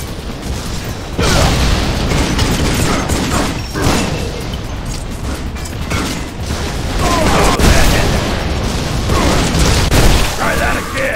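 Guns fire with loud blasts.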